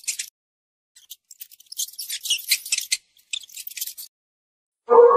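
A mouse squeaks in high, quick bursts.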